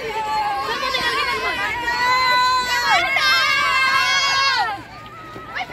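A group of young women chants loudly in unison outdoors.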